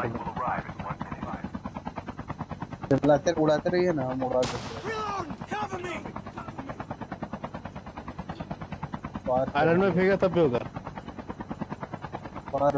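A helicopter's rotor chops steadily.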